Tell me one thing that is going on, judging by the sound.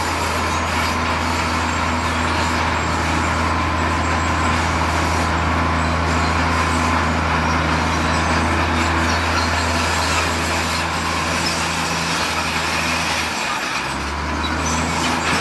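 A bulldozer engine rumbles steadily close by.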